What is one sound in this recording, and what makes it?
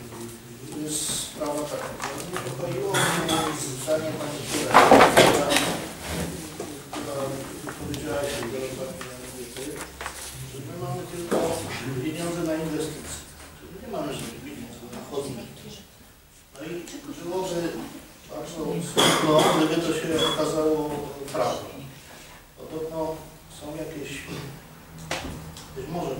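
A middle-aged man speaks calmly and at length.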